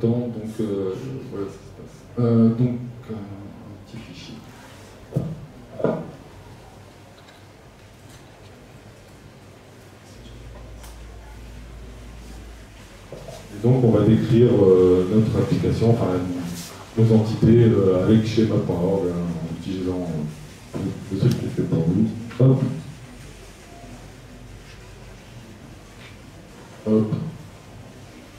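A man speaks calmly through a microphone in a room.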